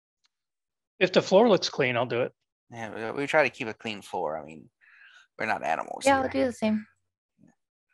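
A man speaks with animation over an online call, heard through a microphone.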